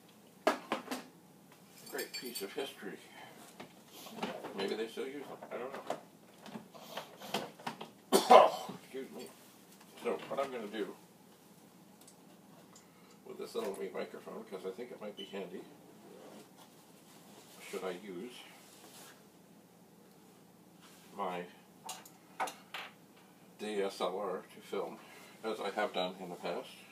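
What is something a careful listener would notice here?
An elderly man talks calmly and close by, in short bursts with pauses.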